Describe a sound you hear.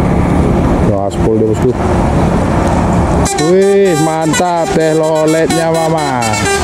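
A bus horn plays a loud musical tune.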